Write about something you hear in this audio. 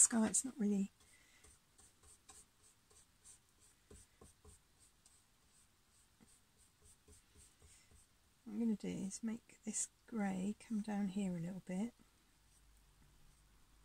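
A brush dabs and scrapes softly on a canvas.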